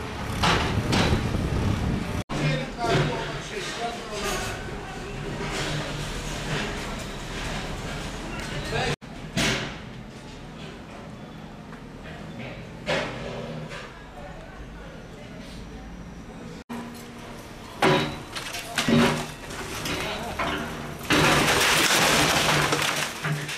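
A digger engine rumbles nearby.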